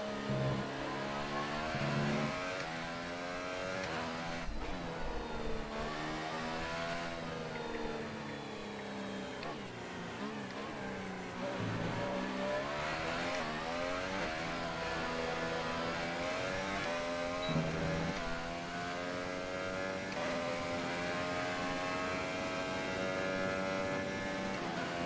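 A racing car engine whines, rising and falling in pitch as it revs through the gears.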